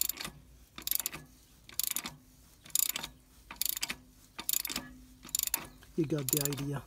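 An engine ticks with sharp, evenly spaced knocks.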